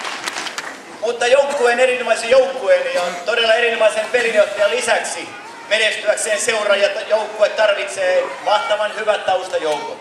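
A man speaks with animation through a loudspeaker outdoors.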